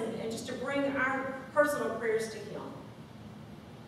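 A woman speaks into a microphone in a large echoing room.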